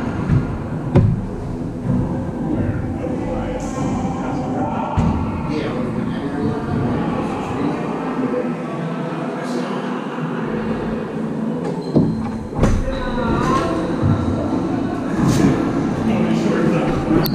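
Several men talk and laugh together in a large echoing court.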